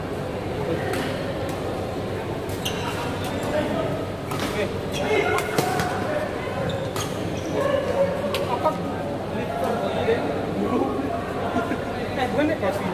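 Shuttlecocks are struck with sharp racket smacks in a large echoing hall.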